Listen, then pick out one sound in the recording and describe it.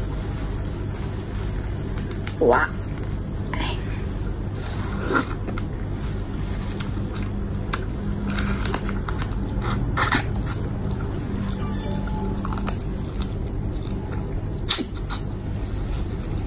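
A woman cracks and tears apart braised shrimp shells with her hands.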